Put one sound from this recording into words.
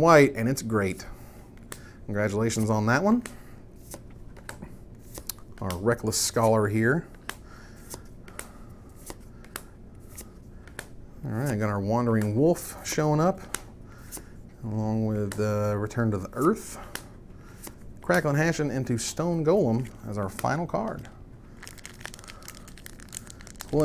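Playing cards rustle and flick softly as they are handled.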